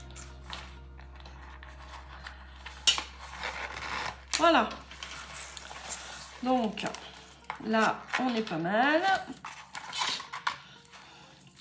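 A cord rubs and scrapes as it is pulled through holes in a booklet.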